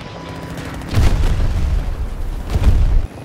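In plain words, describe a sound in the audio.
An explosion bursts with a heavy roar.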